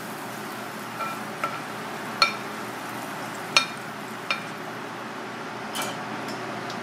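Metal tongs clink sharply against a ceramic plate.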